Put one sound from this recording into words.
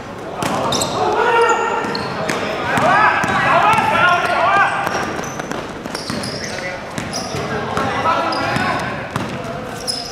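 Young men shout and call out nearby in an echoing hall.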